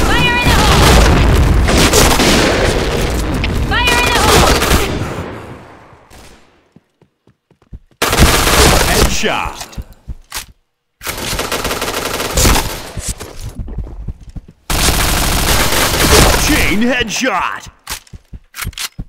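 Automatic gunfire rattles in bursts.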